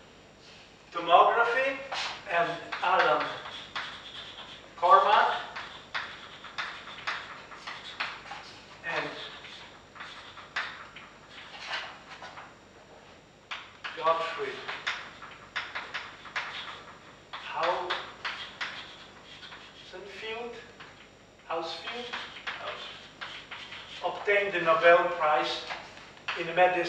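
An elderly man speaks calmly, pausing often.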